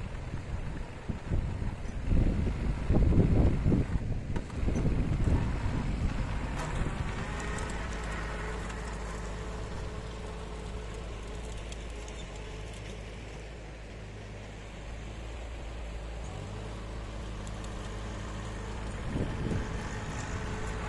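A small tractor engine drones steadily nearby.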